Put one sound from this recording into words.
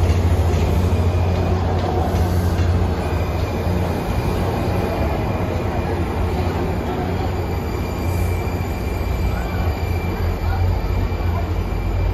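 A metro train rumbles along the tracks.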